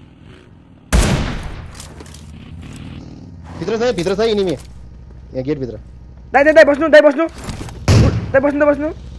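A rifle fires a loud, echoing shot.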